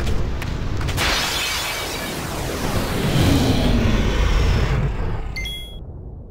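A loud rushing whoosh swells and fades.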